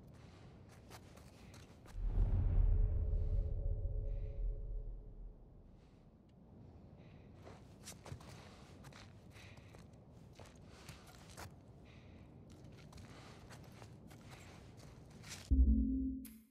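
Soft footsteps shuffle slowly across a hard tiled floor.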